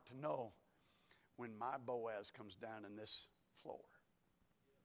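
A man speaks through a microphone in a large echoing hall, in a calm, drawn-out voice.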